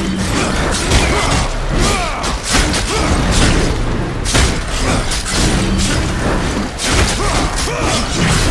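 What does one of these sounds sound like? Magic energy crackles and whooshes.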